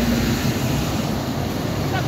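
A bus rumbles past nearby.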